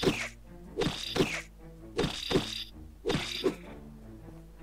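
Sword slashes ring out with bright magical bursts.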